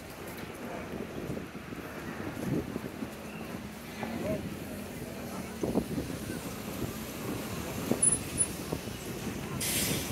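A wheeled suitcase rattles along a pavement.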